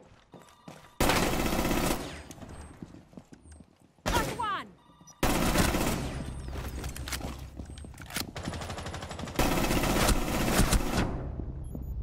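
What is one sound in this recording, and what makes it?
Rapid gunshots fire in loud bursts.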